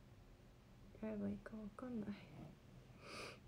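A young woman speaks briefly and softly close to a microphone.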